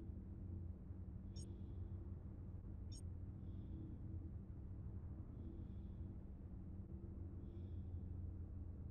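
A spacecraft engine hums low and steadily.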